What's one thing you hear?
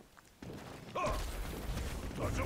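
An energy blast whooshes.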